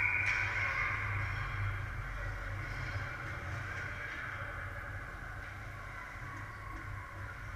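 Ice skates scrape and swish faintly across ice in a large echoing hall.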